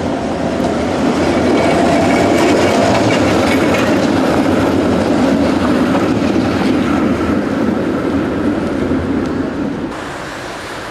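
A tram rumbles past close by on its rails.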